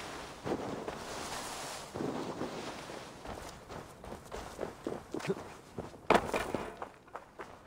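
Footsteps crunch through snow and dry brush.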